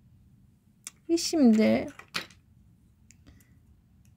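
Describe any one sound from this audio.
Small plastic toy pieces clatter and click together.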